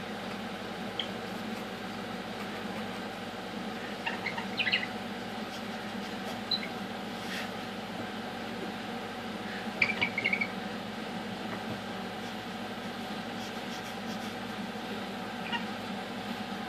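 A parrot chirps and squawks in short high bursts.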